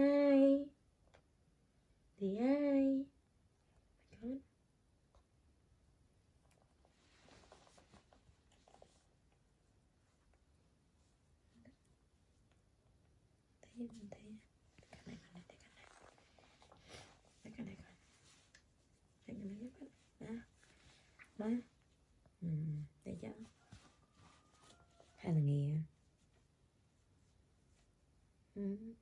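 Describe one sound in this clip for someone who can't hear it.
A woman talks softly and in a high, coaxing voice, close by.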